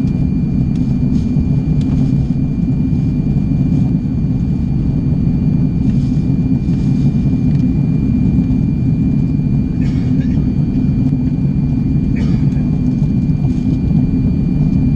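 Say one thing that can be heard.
A jet airliner's engines roar steadily in flight, heard from inside the cabin.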